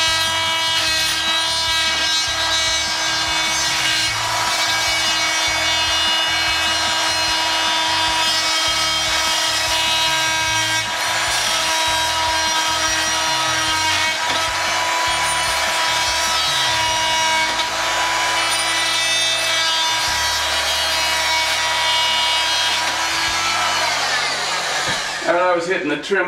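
An oscillating power tool buzzes steadily as it cuts.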